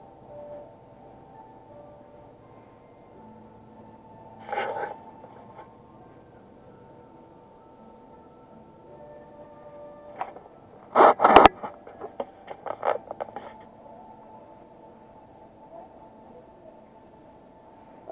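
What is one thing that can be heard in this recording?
A brush sweeps softly over short hair.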